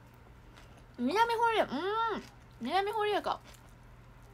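A young woman hums in delight while chewing.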